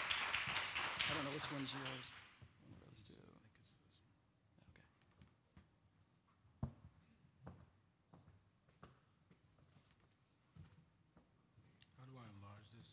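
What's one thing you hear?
A man speaks into a microphone in a room that echoes slightly.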